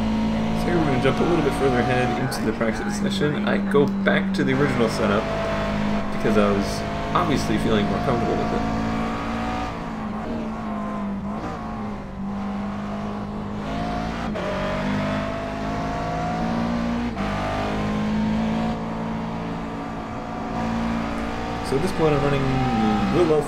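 A race car engine crackles and pops as it slows for corners.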